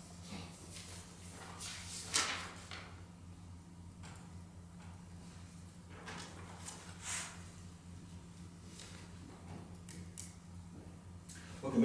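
A man speaks quietly in a large, echoing room.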